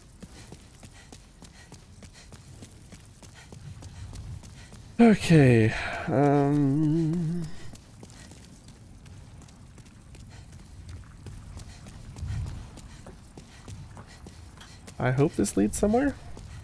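Footsteps patter quickly on stone steps.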